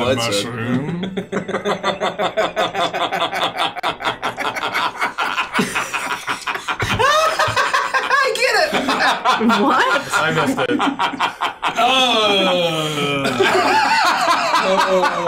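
A group of young men laugh loudly over microphones.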